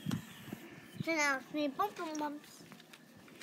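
A young girl speaks in a high, sing-song voice close by.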